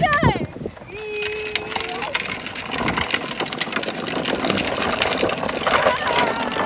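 Plastic wheels rumble on a tarmac lane.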